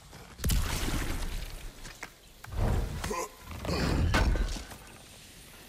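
A heavy chest lid creaks and thuds open.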